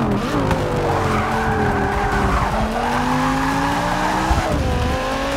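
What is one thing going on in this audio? Tyres squeal through a corner.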